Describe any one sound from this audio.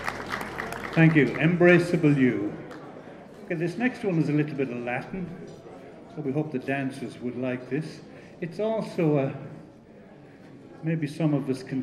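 An older man speaks calmly through a microphone in a reverberant room.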